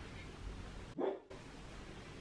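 A cake tin clunks onto a counter.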